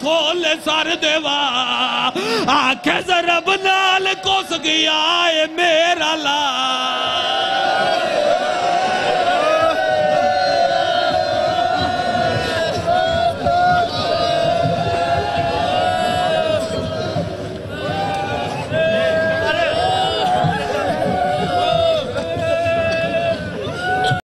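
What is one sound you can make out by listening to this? A crowd of men chants loudly in unison.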